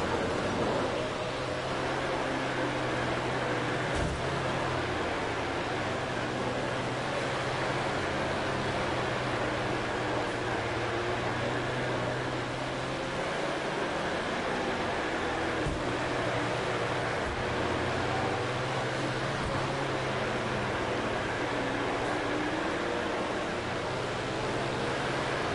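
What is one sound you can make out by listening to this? A race car engine roars steadily at high revs.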